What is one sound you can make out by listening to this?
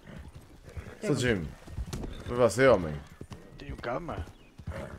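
A young man speaks with animation, close to a microphone.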